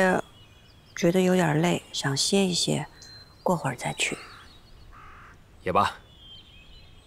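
A woman answers softly and calmly close by.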